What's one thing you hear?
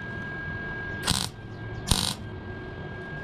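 A welder crackles and sizzles in short bursts.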